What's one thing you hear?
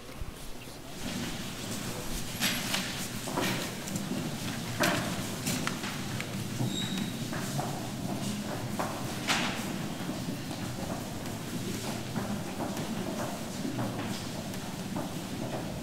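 Footsteps shuffle on a hard floor as people walk past.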